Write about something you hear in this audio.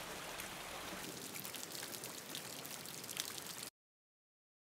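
Raindrops splash on wet paving.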